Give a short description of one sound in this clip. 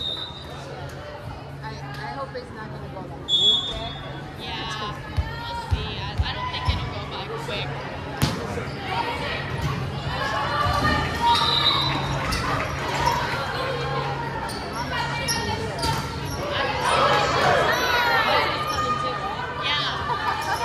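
A volleyball thumps off hands and arms in a large echoing gym.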